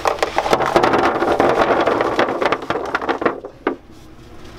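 Hard candies clatter as they pour onto a tray.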